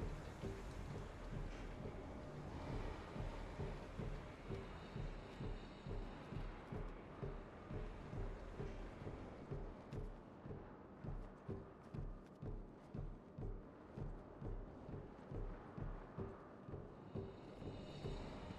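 Footsteps thump steadily along a metal duct.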